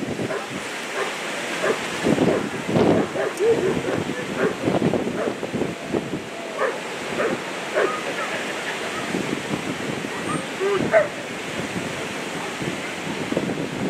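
A man gives short commands to a dog outdoors.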